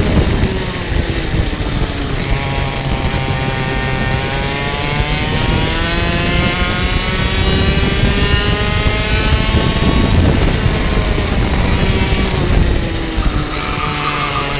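Other kart engines whine nearby.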